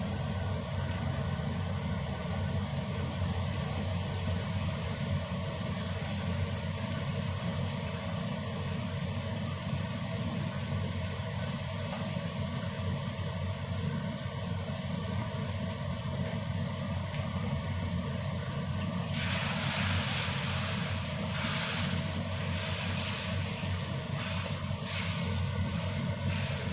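Food sizzles steadily in a hot pan.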